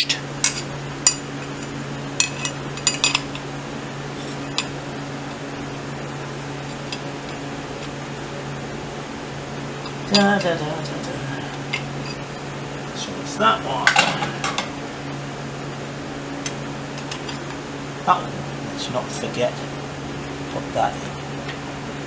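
Metal parts clink and click against each other.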